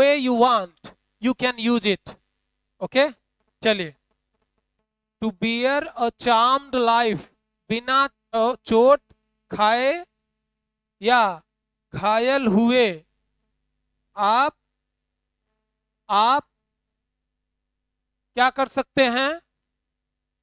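A young man speaks with animation close to a microphone, in short bursts with pauses.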